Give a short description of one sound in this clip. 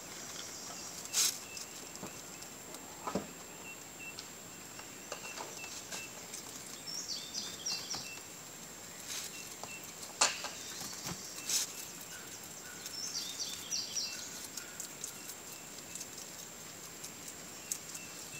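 A rabbit crunches and munches on fresh leaves.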